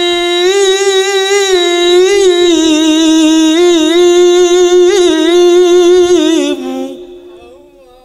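A young man sings a melodic, wavering tune loudly through a microphone, with a trailing echo.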